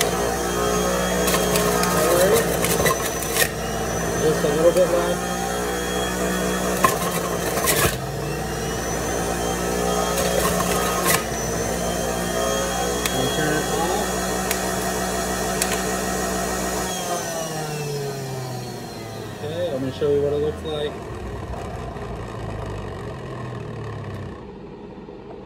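A juicer motor whirs loudly, then winds down.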